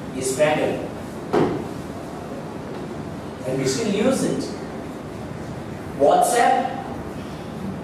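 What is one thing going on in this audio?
A young man speaks through a microphone in short, animated bursts.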